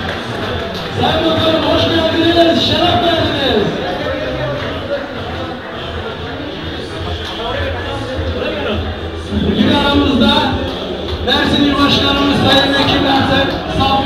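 Men shout and chant loudly in a crowd.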